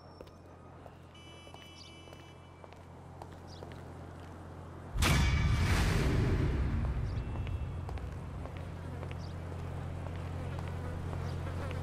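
Footsteps walk slowly on pavement.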